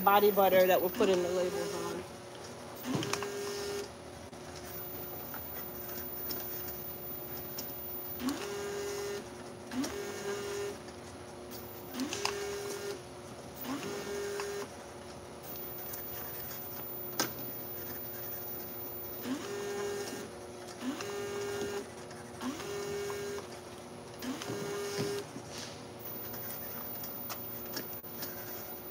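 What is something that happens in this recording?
A labelling machine hums steadily.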